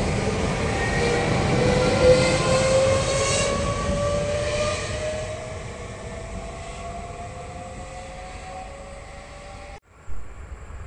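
An electric multiple-unit train pulls away and fades into the distance.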